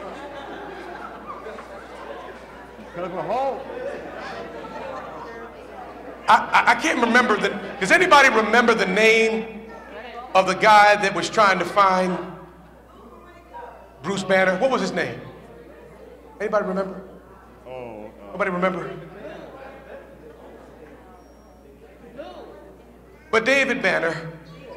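A man preaches with animation through a microphone in a large echoing hall.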